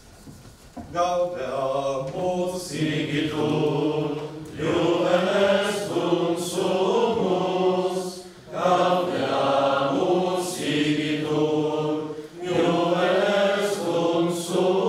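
A group of men and women sing together in a large echoing hall.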